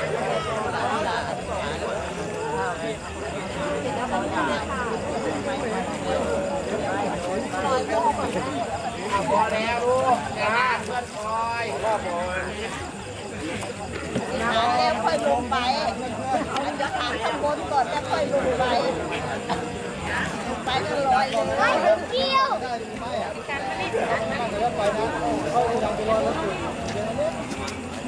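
A group of men chant together in steady voices.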